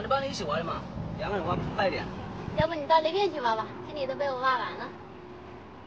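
A woman answers cheerfully nearby.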